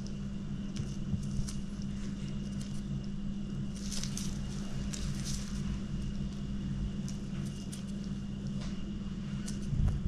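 A small knife scrapes and cuts into soft fruit.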